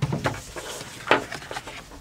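Paper rustles.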